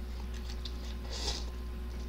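A young man slurps noodles noisily.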